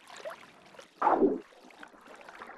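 Water splashes loudly once.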